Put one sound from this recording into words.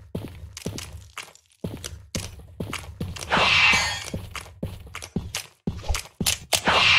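Footsteps crunch slowly over rocky ground.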